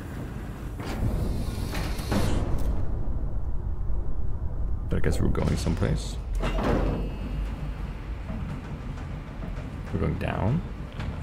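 A lift pod rumbles as it moves.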